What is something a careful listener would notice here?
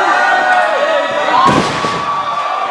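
A body slams down hard onto a wrestling ring mat with a heavy thud.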